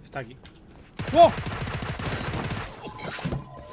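Automatic gunfire bursts out.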